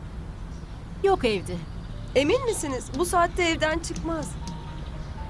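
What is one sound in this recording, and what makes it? A young woman answers with animation.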